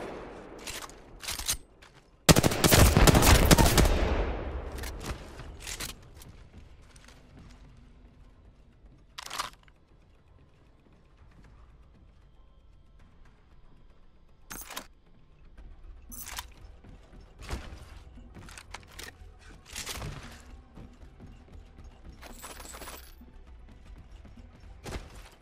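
A weapon clicks and clacks as it is picked up and reloaded.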